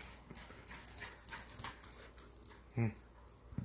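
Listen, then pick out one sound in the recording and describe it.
A small dog's claws click and patter quickly on a hard floor.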